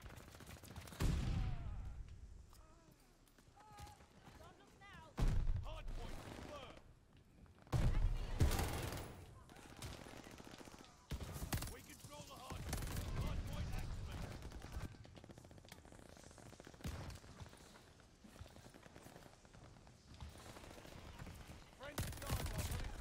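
Automatic rifle fire crackles in short bursts.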